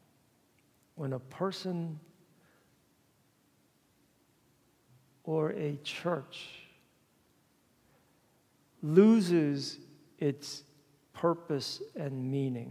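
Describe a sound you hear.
A young man speaks calmly in bursts, in a room with some echo.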